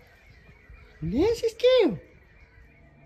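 A small dog whines briefly nearby.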